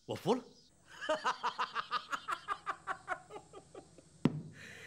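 A middle-aged man laughs heartily.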